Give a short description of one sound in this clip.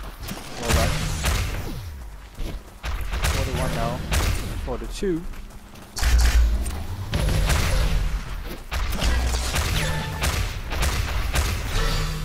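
Energy weapons fire and blasts burst in a video game.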